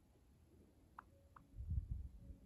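A small bird gives two short, soft chirps close by.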